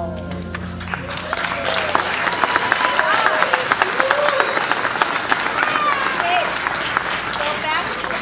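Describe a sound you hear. Children strum guitars on a stage.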